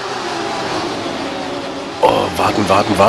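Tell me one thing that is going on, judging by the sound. Racing car engines roar and whine as the cars speed along.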